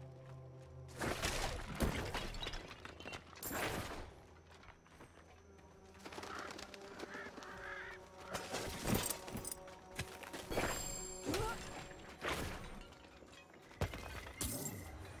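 Combat hits and spell bursts crash in a dark fantasy battle.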